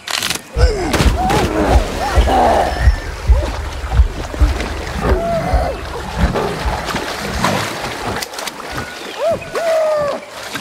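Water splashes as a monkey thrashes and swims.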